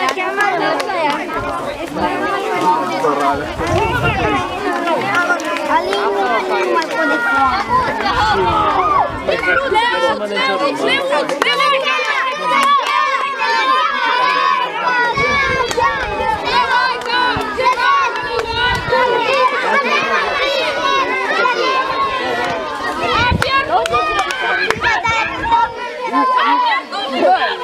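A crowd of children chatter and shout close by, outdoors.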